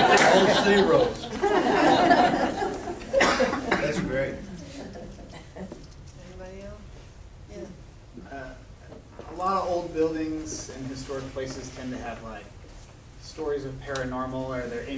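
An elderly woman speaks calmly to a group in a large, echoing room.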